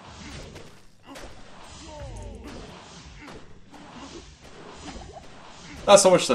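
Weapon hits and spell effects clash in a video game battle.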